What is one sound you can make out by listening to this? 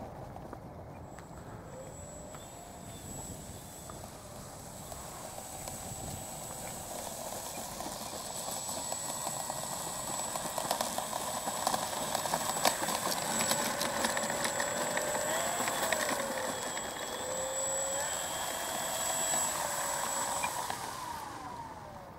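A model plane's electric motor whines steadily and grows louder as it taxis closer.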